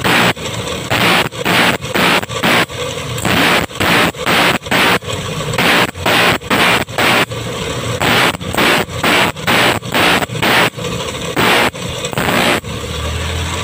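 A metal file scrapes against a blade in quick, rhythmic strokes.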